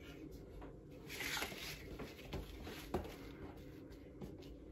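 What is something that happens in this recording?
Leather rustles and flaps as it is lifted and laid down.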